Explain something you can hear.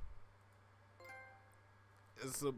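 A short electronic notification chime sounds.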